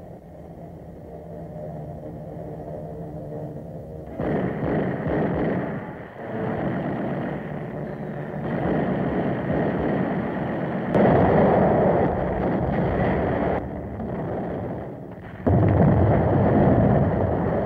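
An aircraft engine drones steadily overhead.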